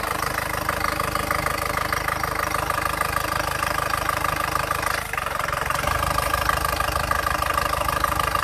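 A turbodiesel engine idles.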